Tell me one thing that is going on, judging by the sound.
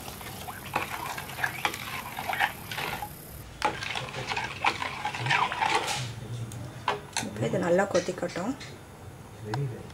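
A metal spoon stirs thick sauce and scrapes against a pot.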